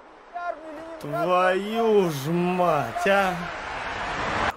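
A man shouts loudly up close.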